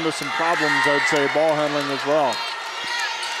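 A crowd chants loudly in a large echoing hall.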